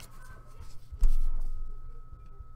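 A hard plastic card holder knocks against a table as hands pick it up.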